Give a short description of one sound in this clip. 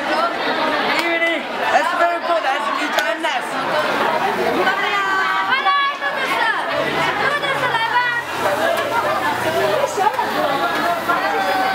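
Young women call out and chat close by.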